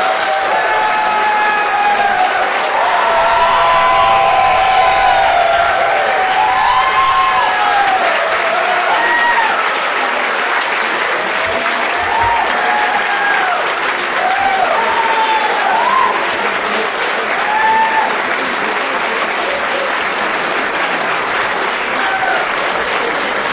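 A crowd of people cheers and whoops.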